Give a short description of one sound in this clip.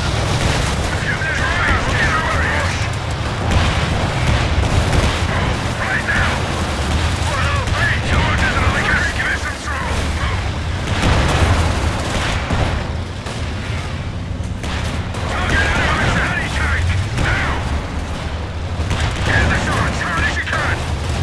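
Machine guns rattle in bursts.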